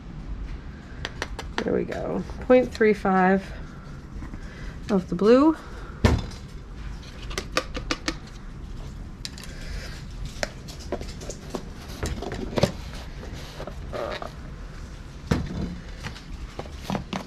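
A spoon and small containers clink and tap on a hard surface.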